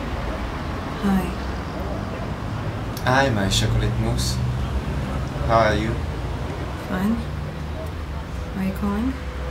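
A young woman speaks softly into a phone.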